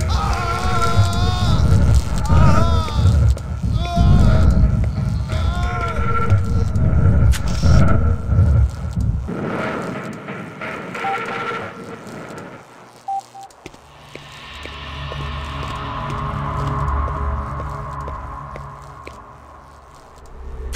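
Footsteps walk on a hard floor indoors.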